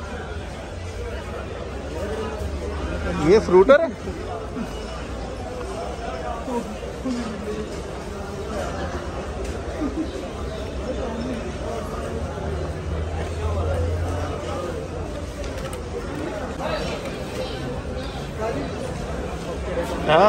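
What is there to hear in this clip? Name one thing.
A crowd murmurs steadily in the background.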